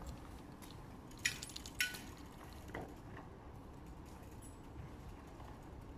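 Bicycle tyres roll over paving stones outdoors.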